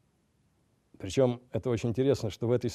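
A man speaks steadily into a microphone.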